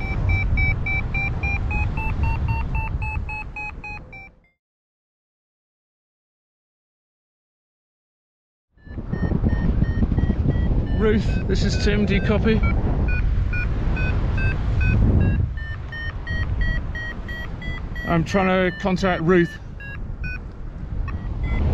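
A flight instrument beeps in quick, rising tones.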